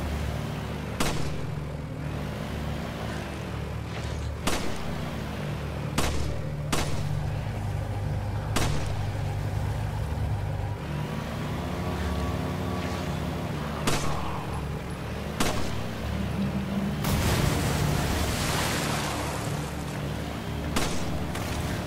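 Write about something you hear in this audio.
Gunshots crack sharply, one at a time.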